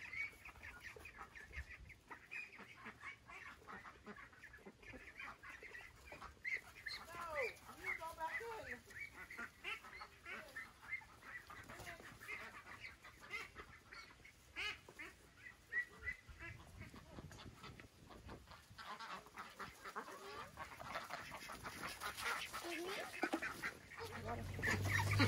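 Ducks quack nearby.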